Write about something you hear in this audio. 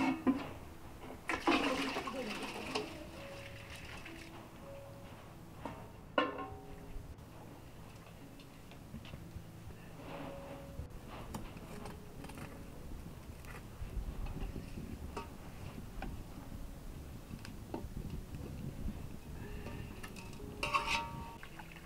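A metal lid clanks against a pot.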